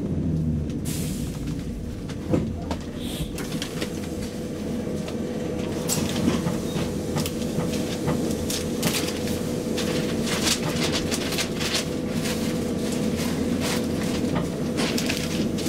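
A train's engine hums steadily while standing still.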